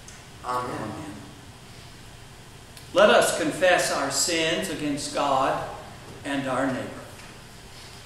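A man reads aloud calmly in an echoing hall.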